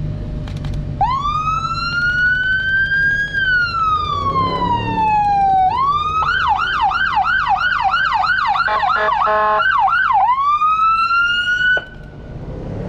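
A police siren wails loudly nearby, rising and falling, then switching to a fast yelp before cutting off.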